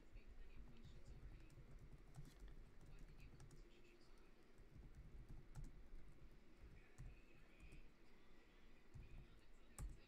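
Fingers type on a keyboard with soft clicks.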